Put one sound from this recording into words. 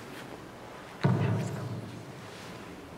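A man speaks through a microphone in an echoing room.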